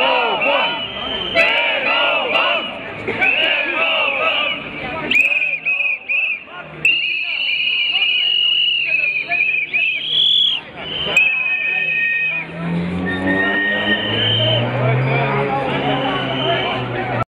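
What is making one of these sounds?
A large crowd of men and women talks and shouts outdoors.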